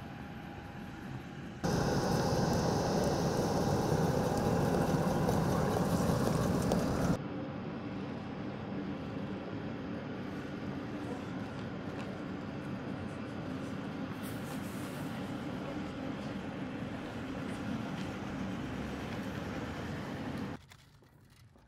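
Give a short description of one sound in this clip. A jet engine hums steadily nearby.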